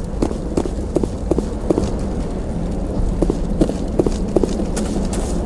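Footsteps run quickly on a hard floor.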